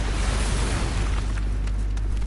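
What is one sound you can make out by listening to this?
A blade strikes with a loud slash.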